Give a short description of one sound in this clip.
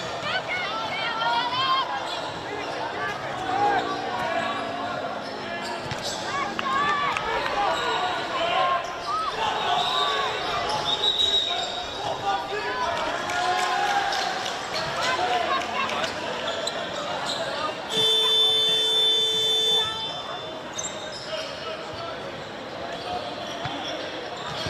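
Women players shout and call to each other across an open field.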